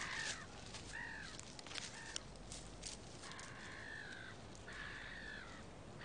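Footsteps swish through dry grass and bracken.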